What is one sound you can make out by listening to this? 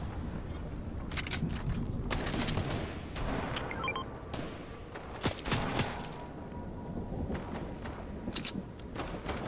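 Footsteps thud across a hard roof.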